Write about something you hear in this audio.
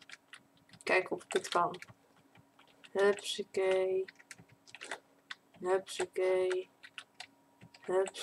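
A young woman talks animatedly into a close microphone.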